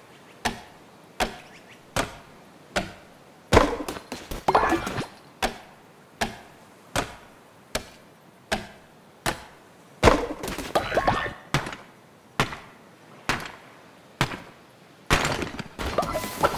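An axe chops into a tree trunk with steady, evenly spaced thuds.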